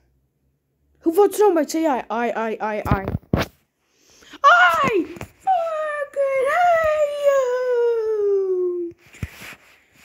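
A toy plays a high, squeaky electronic song.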